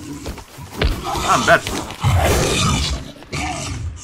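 A creature snarls and shrieks up close.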